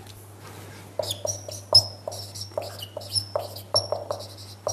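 A marker squeaks in short strokes across a whiteboard.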